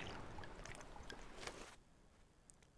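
Sea waves wash against a wooden boat.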